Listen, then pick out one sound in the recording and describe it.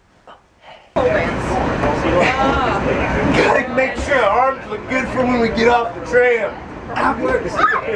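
Young men shout and laugh with excitement.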